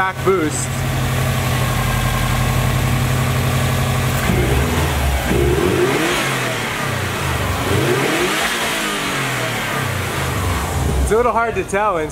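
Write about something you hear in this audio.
A car engine idles with a deep rumble.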